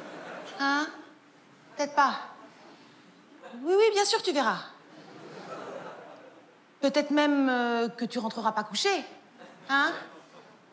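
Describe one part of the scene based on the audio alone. A woman talks expressively on a phone into a stage microphone, with pauses between her phrases.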